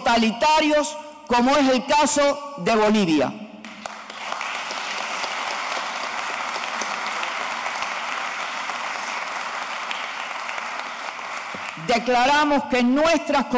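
An elderly woman reads out clearly through a microphone.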